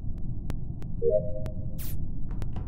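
A short electronic chime sounds as an upload finishes.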